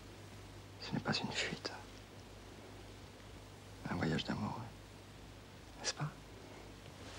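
A man speaks softly, close by.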